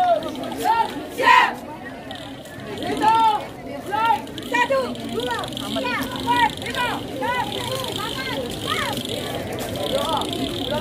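A group of young girls shout short calls in unison.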